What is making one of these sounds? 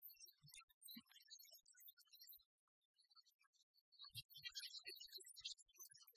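A hand saw rasps back and forth through metal.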